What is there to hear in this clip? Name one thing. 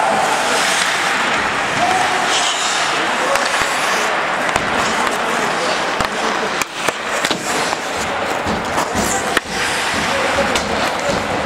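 Ice skates scrape and hiss across ice.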